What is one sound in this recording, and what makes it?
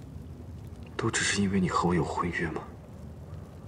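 A young woman asks a question quietly up close.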